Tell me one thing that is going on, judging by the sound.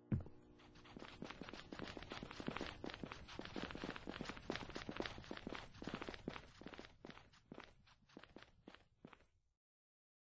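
Footsteps patter quickly on pavement.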